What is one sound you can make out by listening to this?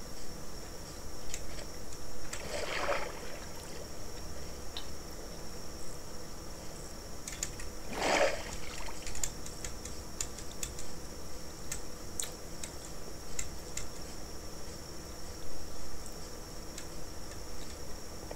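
A mouse clicks.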